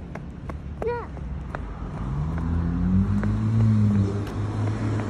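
A young boy speaks and calls out close by.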